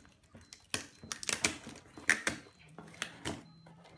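A knife slices through packing tape on a cardboard box.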